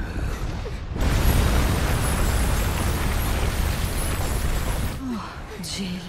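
A fire roars and hisses with spraying sparks.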